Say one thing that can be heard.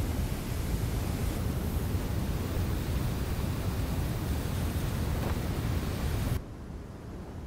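Sand pours down in heavy streams with a loud rushing roar.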